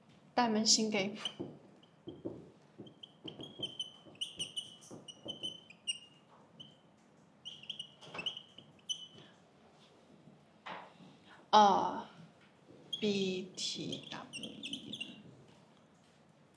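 A young woman speaks calmly, as if explaining.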